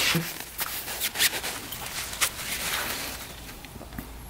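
A cloth rubs and squeaks against a metal rod.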